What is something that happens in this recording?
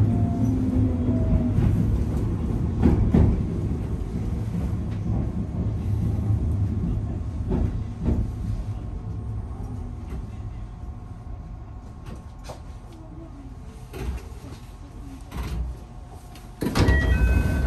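A train rumbles along the tracks and slowly comes to a stop.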